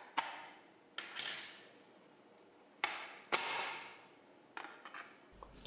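A plastic panel scrapes as hands slide it out.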